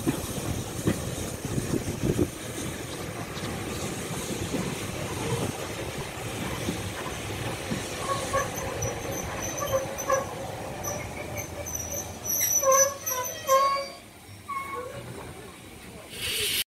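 Train carriages rumble and clatter slowly along rails.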